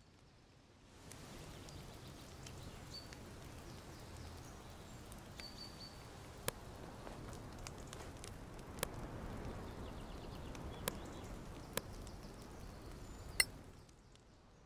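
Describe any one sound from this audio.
A campfire crackles and hisses outdoors.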